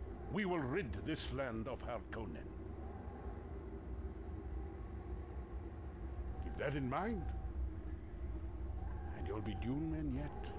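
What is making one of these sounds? An elderly man speaks sternly and forcefully, close by, in short bursts.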